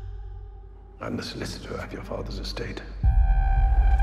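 An elderly man speaks calmly and quietly, close by.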